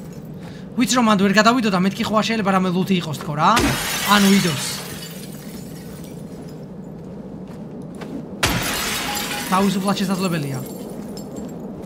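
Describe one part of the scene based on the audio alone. A man talks with animation into a microphone, close by.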